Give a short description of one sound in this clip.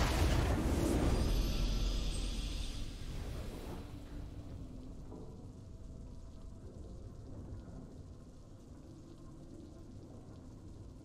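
Triumphant game music swells at first, then slowly fades.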